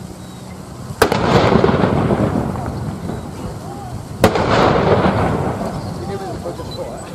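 A field gun fires two booming shots that echo and rumble away outdoors.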